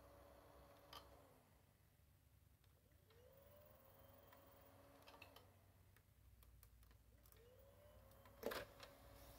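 A finger clicks a power button several times.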